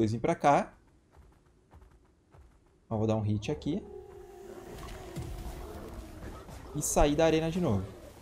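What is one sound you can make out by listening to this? A large creature lets out loud, rising and falling roars.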